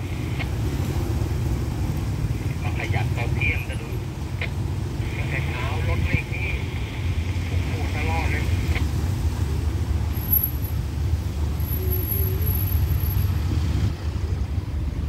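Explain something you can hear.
Car engines hum as vehicles drive slowly past outdoors.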